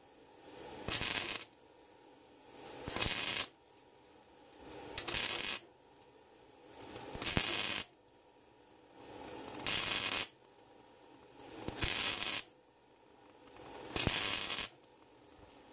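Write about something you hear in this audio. An arc welder crackles and hisses in short bursts.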